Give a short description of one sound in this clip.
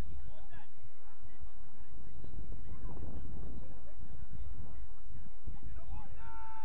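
Young men shout to each other in the distance.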